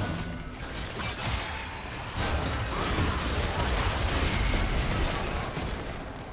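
Video game spell effects whoosh and crash during a fight.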